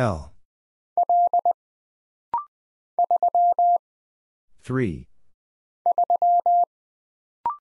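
A telegraph key taps out rapid bursts of steady Morse code beeps.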